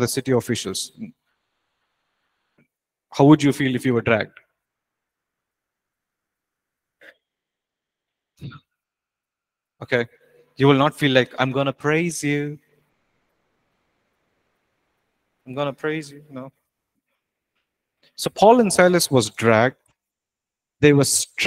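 A man speaks calmly through a microphone in short phrases with pauses.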